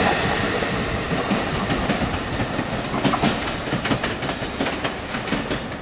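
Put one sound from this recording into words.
Train wheels click over rail joints.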